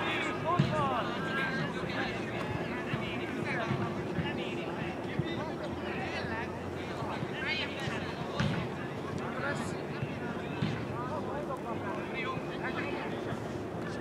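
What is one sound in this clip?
Players shout and call to each other across an open field outdoors.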